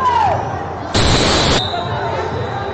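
A referee blows a whistle sharply.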